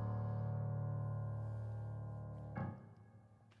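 A keyboard plays a sustained chord that fades away.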